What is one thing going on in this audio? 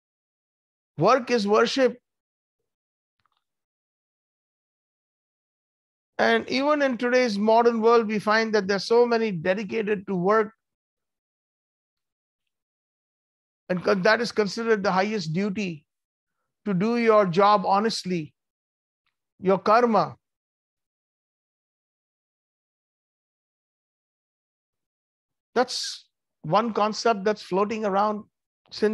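A middle-aged man speaks in bursts over an online call, with pauses between phrases.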